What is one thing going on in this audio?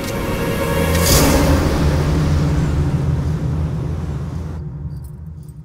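Waves crash and surge against rocks.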